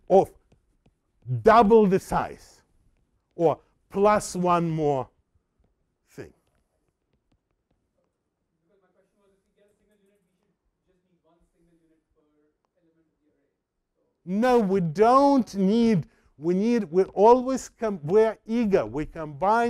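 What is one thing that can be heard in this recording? An elderly man lectures with animation through a microphone, pausing now and then.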